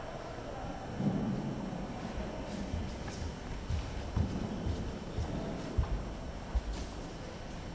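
Bare feet thud and stamp on a wooden floor.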